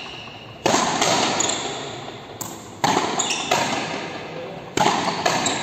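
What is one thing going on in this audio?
A rubber ball smacks against a wall in a large echoing indoor court.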